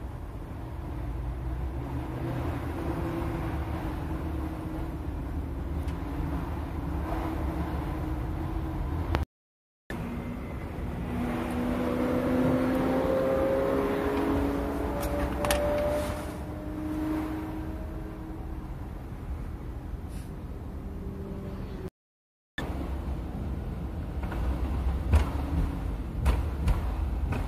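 Tyres hum and rumble steadily on a highway from inside a moving car.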